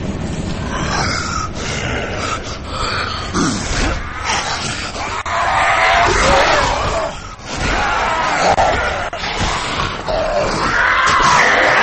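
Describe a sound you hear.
A blunt weapon thuds and smacks into flesh.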